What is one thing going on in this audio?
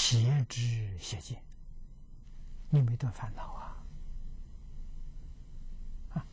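An elderly man speaks calmly into a clip-on microphone, in short phrases with pauses.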